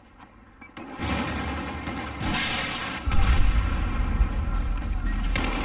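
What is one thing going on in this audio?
Loud battle noise rumbles and crackles in a shooting game.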